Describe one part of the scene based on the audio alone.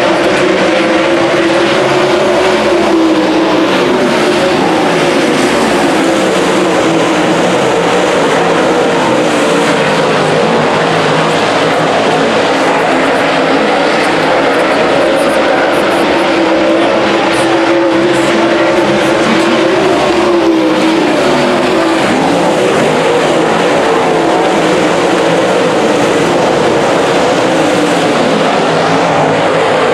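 Race car engines roar loudly, rising and falling in pitch as they pass.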